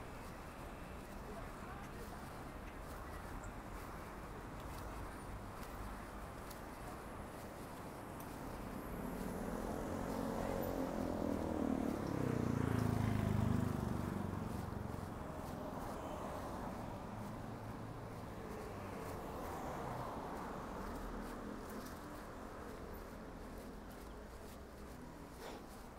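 Cars drive past on a street.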